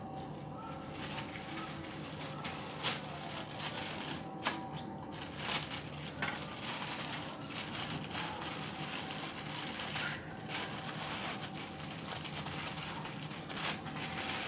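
Plastic film crinkles and rustles as it is handled.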